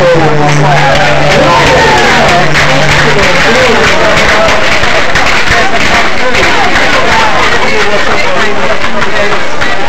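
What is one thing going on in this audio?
A woman claps her hands close by.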